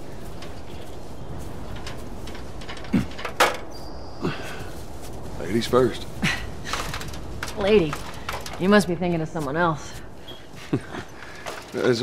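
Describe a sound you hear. A metal ladder clanks as someone climbs it.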